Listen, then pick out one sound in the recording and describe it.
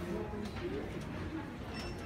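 A crowd of shoppers murmurs nearby.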